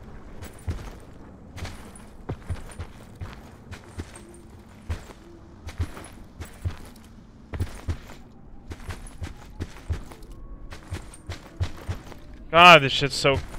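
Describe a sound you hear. Footsteps thud steadily on grass.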